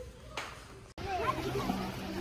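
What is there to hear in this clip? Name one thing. Water splashes and laps in a pool.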